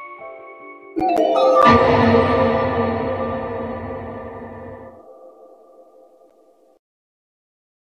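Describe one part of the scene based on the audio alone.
A loud magical whoosh bursts out and slowly fades.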